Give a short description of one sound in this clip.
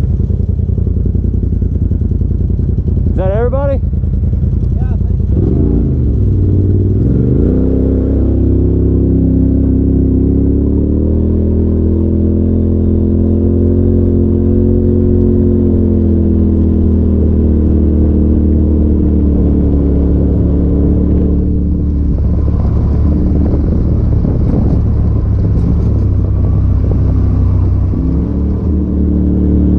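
A side-by-side UTV engine drones and revs as the vehicle drives.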